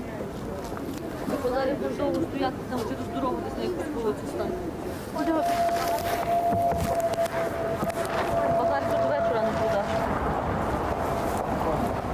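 A middle-aged woman talks loudly with animation outdoors.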